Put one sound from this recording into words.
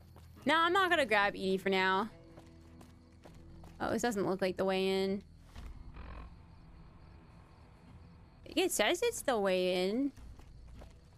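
A young woman speaks with animation, close to a microphone, in short bursts.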